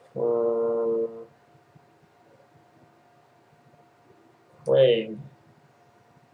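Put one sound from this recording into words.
A young man speaks a couple of short words close to a microphone.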